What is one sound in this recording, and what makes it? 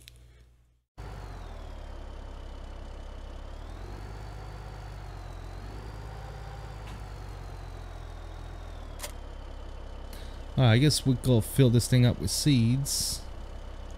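A tractor engine hums steadily and rises slightly in pitch as it pulls away.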